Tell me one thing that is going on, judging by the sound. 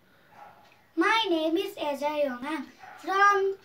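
A young boy speaks loudly and clearly, close by, as if reciting.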